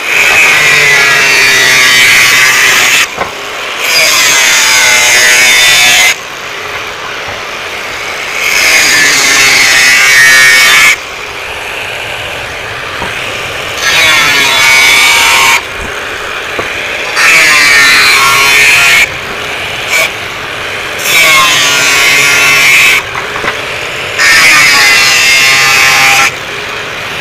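An angle grinder screeches loudly as it cuts through metal in repeated bursts.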